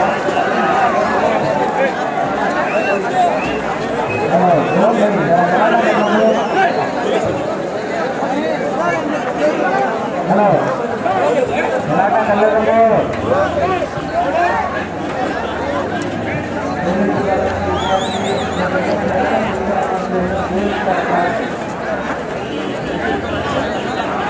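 A large crowd of young men chatters and shouts outdoors all around, close by.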